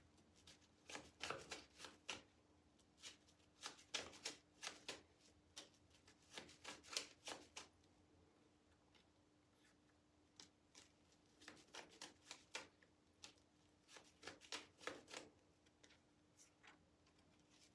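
Playing cards riffle and snap softly in close-up as they are shuffled.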